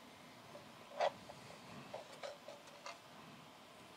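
Light plastic pieces knock softly on a hard surface.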